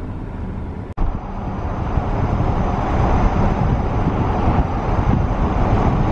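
Tyres rumble steadily on the road from inside a moving car.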